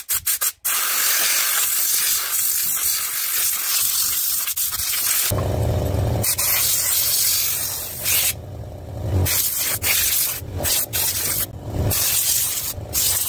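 A pressure washer sprays a jet of water with a loud, steady hiss.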